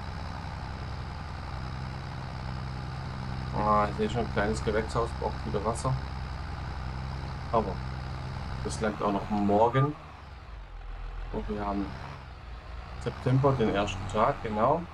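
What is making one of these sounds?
A tractor engine drones steadily.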